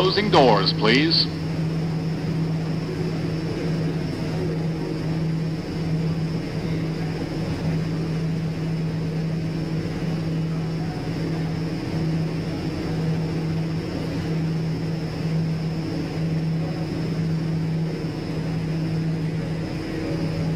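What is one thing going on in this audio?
A stopped subway train hums steadily.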